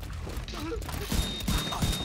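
Gunshots fire rapidly in a row.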